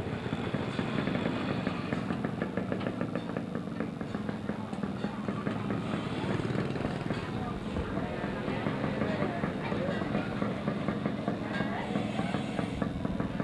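Motorbikes ride past along a busy street.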